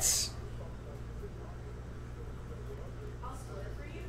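A marker pen scratches on paper.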